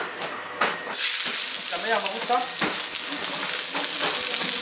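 Vegetables sizzle in hot oil in a frying pan.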